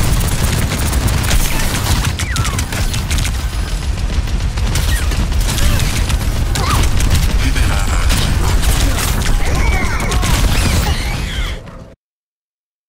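Gunfire and explosions boom rapidly in a game.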